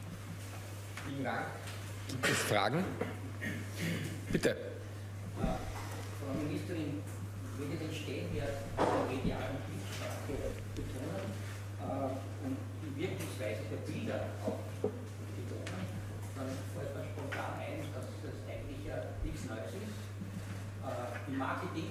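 A woman speaks calmly into a microphone, heard through a loudspeaker in a room.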